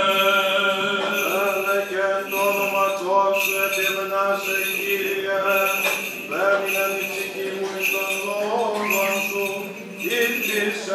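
Men chant together in a slow, sustained hymn in a reverberant room.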